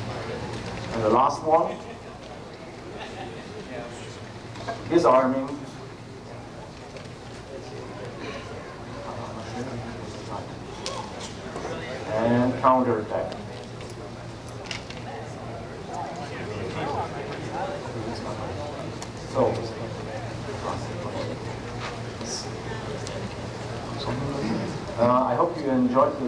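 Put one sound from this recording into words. A man speaks loudly and clearly.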